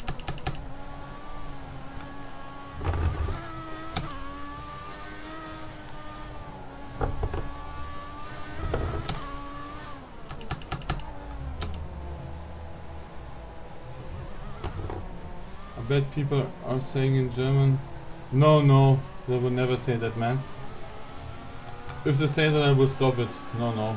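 A racing car engine whines and revs up and down as gears shift.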